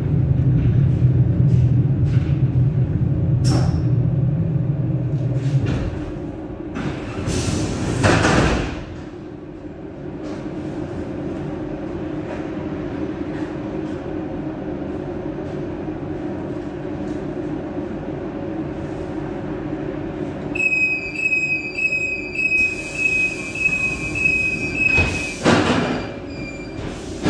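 An electric train hums steadily, heard from inside the driver's cab.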